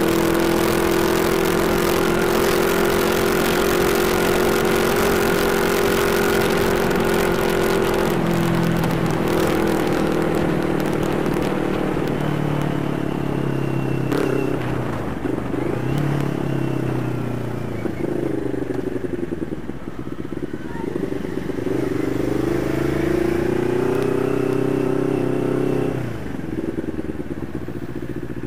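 A motorcycle engine hums steadily and rises and falls in pitch as it speeds up and slows down.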